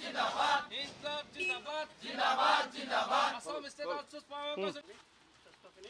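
A crowd of men and women chants slogans loudly in unison outdoors.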